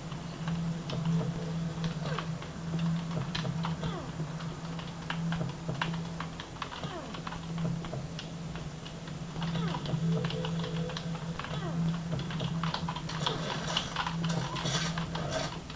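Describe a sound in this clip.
A low, steady video game hum plays through small loudspeakers.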